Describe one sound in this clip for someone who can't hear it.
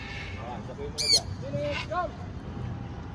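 A parrot squawks loudly nearby.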